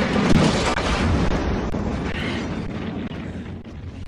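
Fire roars.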